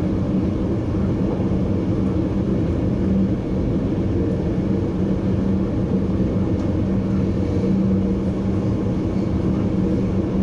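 A train's motor hums low and steadily.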